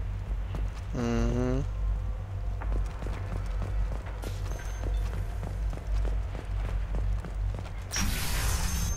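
Heavy footsteps thud quickly on a metal floor.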